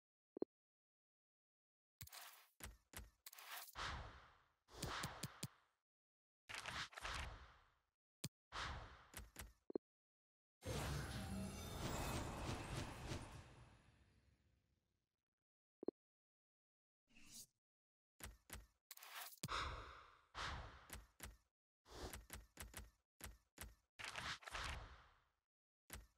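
Short game menu sounds click and swoosh again and again.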